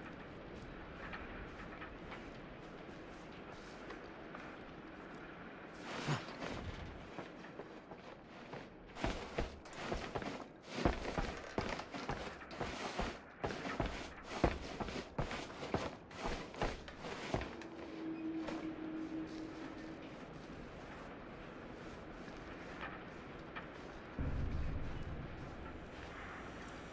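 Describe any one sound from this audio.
Footsteps fall on a hard floor.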